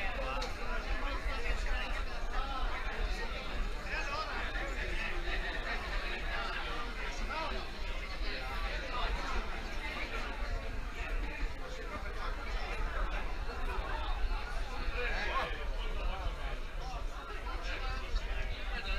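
A crowd of adults chatters at once in a large echoing hall.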